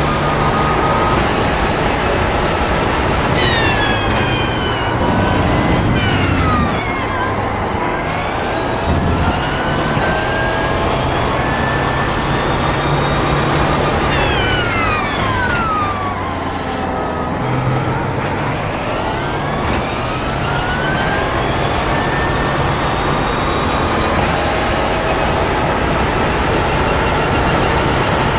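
A race car engine roars loudly, revving high and dropping sharply as gears shift for braking.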